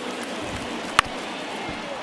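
A baseball strikes with a single sharp crack.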